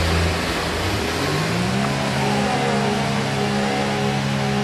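A racing car engine revs up and roars away.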